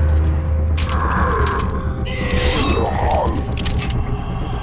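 A revolver clicks and rattles as it is reloaded.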